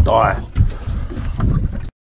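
Water laps against the hull of a boat.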